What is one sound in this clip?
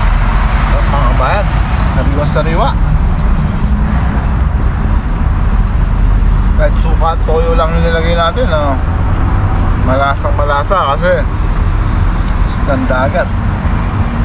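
A man speaks briefly in short bursts nearby.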